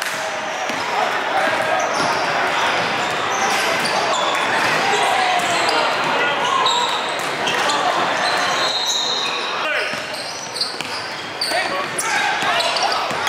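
A basketball bounces on a hard wooden floor.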